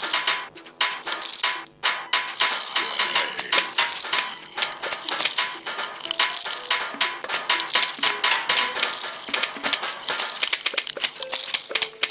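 Peas splat against targets in quick succession.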